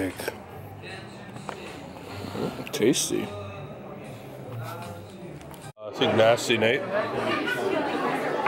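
A crowd of adults chatters and talks nearby in a busy room.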